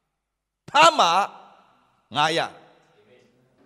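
A man speaks with animation into a microphone, with a slight echo.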